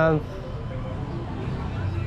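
A motorbike engine hums along the street at a distance.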